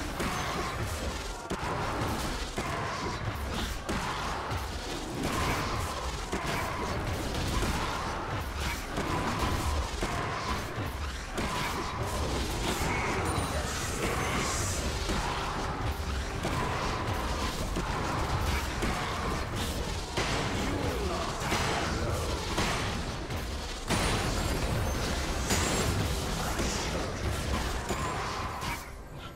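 Video game combat sounds of rapid blows and magic effects clash repeatedly.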